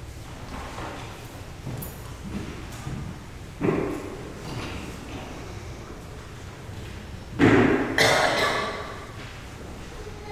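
Footsteps walk slowly across a hard floor in a large echoing room.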